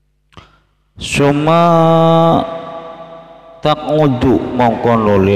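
A man chants in a loud, drawn-out voice through a headset microphone.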